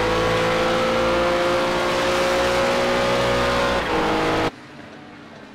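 A race car engine roars loudly up close at high revs.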